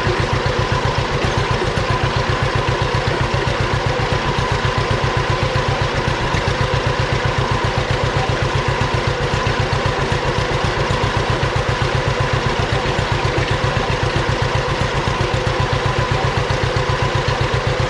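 Soil scrapes and rustles under a cultivator.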